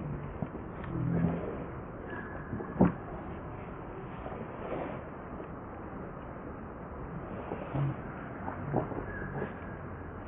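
Monkeys scuffle and tumble on dry ground.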